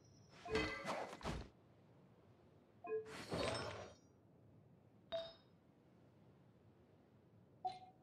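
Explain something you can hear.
Short bright menu chimes and whooshes sound now and then.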